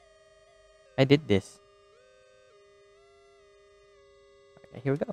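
An electronic device gives off steady, shifting tones.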